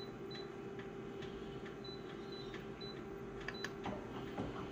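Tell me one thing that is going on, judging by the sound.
A machine's touch panel beeps briefly with each press.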